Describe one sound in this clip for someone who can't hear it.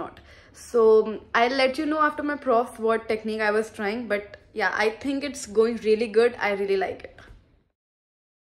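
A young woman talks with animation close to the microphone.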